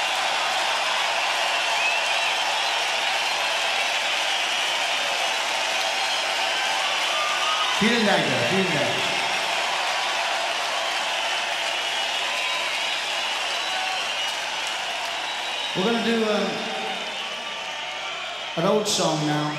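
A huge crowd cheers and roars in a large arena.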